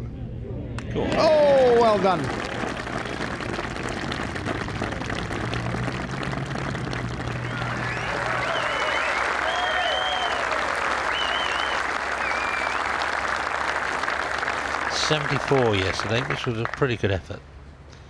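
A crowd applauds and cheers loudly outdoors.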